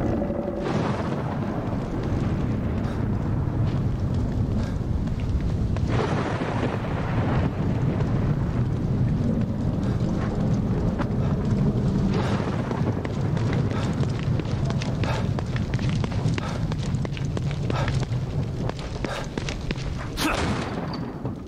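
Rain falls steadily on wet pavement.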